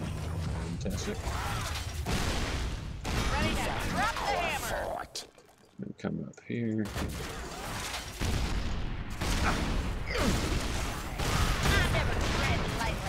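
Game combat effects clash, zap and crackle.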